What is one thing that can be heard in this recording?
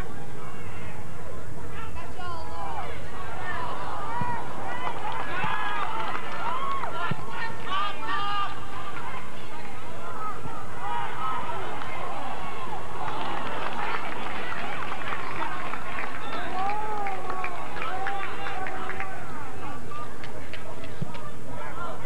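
Young players and spectators shout and cheer outdoors on a field.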